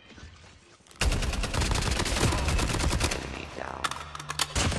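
Gunshots crack out in a video game.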